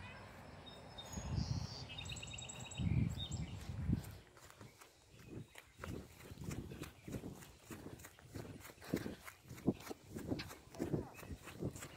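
Footsteps swish and thud quickly through grass.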